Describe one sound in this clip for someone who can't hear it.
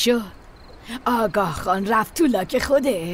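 An elderly woman speaks calmly, close to the microphone.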